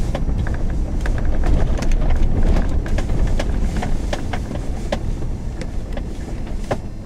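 Gravel and stones knock and crackle under the tyres.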